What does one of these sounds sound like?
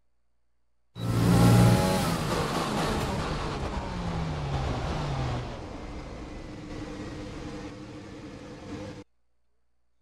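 A racing car engine roars loudly and winds down.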